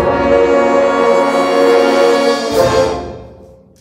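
A brass band plays a loud held chord in an echoing hall and stops.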